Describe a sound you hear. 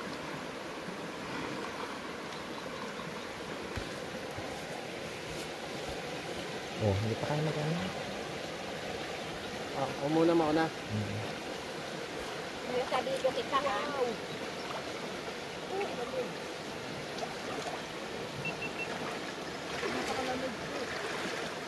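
A shallow stream flows and trickles steadily.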